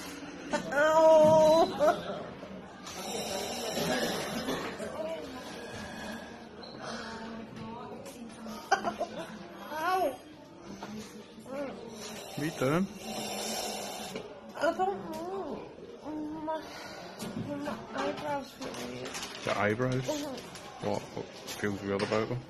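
A young woman breathes hard through a mouthpiece, hissing.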